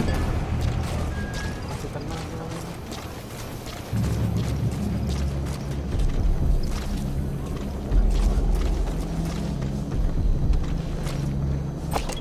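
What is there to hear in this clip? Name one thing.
Footsteps crunch softly on dirt and gravel.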